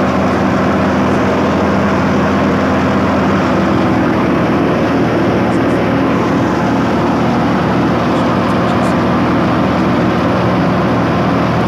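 A belt-driven threshing machine runs with a steady mechanical roar and hum.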